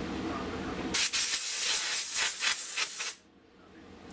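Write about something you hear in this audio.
Compressed air hisses loudly from an air hose.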